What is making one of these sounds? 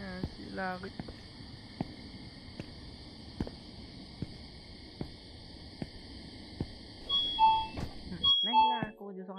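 Footsteps tread steadily on pavement.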